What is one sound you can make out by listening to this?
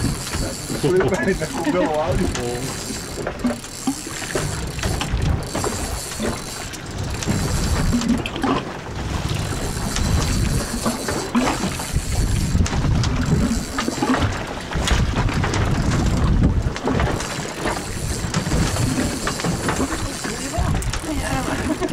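A fishing reel clicks as it is wound in.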